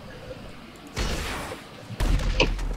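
A rocket launches with a loud whoosh.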